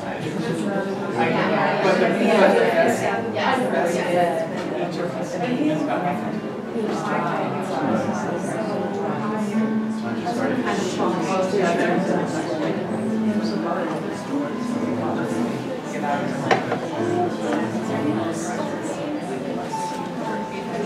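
Several men and women talk and murmur nearby in a room.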